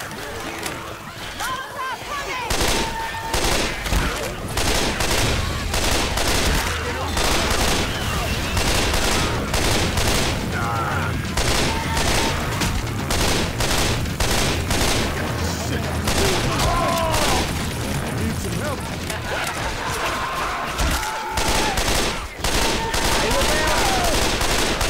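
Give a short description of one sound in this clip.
Zombies growl and shriek.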